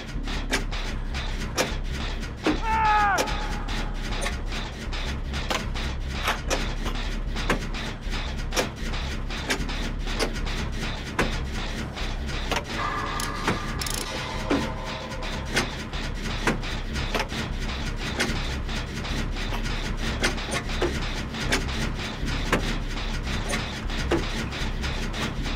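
An engine rattles and clicks rapidly while being worked on.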